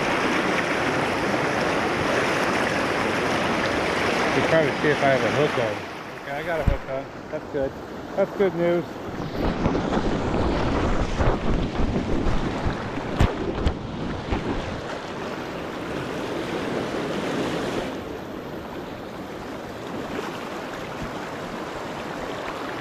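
A fast river rushes and splashes close by.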